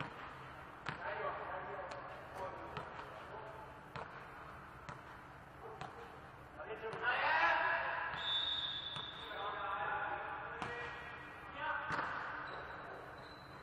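Young men shout and call out to each other across the court.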